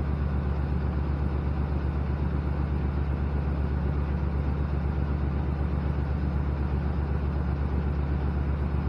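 A pickup truck's engine idles with a steady low rumble.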